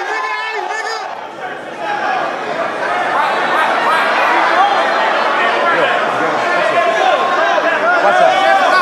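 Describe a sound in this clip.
A crowd of men shouts and cheers loudly in an echoing room.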